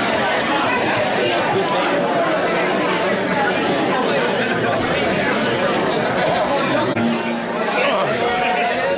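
A live rock band plays loudly in a small echoing room.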